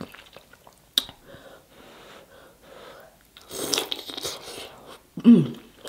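A woman chews and smacks food wetly close to a microphone.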